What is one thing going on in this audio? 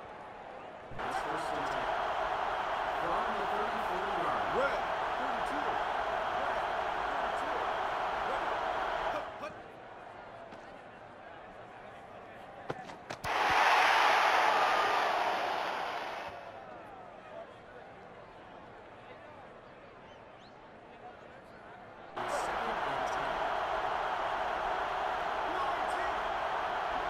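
A large crowd cheers and roars in a stadium.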